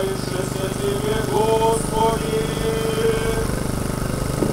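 A man chants slowly through a microphone.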